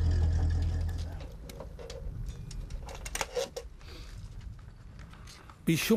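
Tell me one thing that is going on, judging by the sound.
A wire stripper clicks and snips on a cable.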